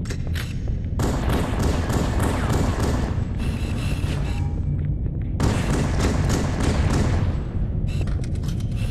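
Gunfire from a game cracks in rapid bursts.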